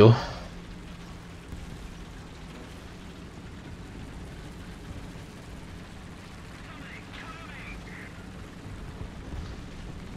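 A tank's tracks clatter and grind over rough ground.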